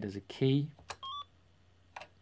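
Short electronic video game beeps sound.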